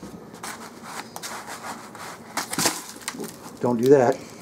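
Hands press crumbs and rustle in a plastic tub.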